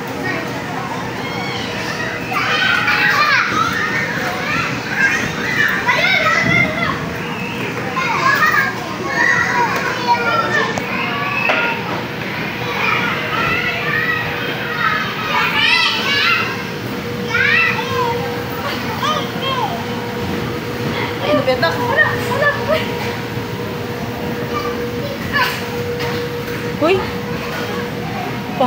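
Young children shout and squeal excitedly nearby.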